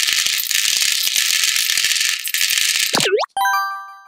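Small plastic beads pour out of a jar and rattle into a plastic tray.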